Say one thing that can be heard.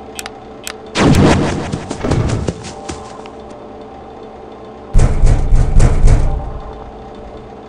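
A metal door slams shut with a heavy bang.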